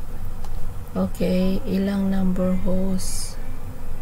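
An elderly woman speaks over an online call.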